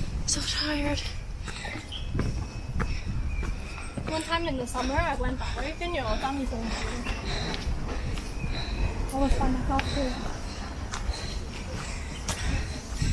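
Footsteps scuff along a paved path.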